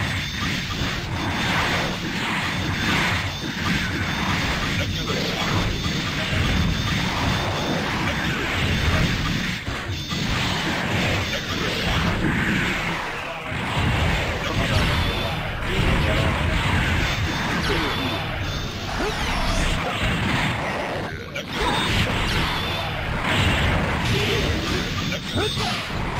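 Video game fighting sounds of blasts, hits and explosions play rapidly throughout.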